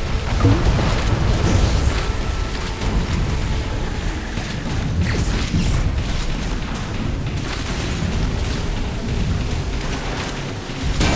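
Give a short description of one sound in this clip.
Guns fire in quick bursts.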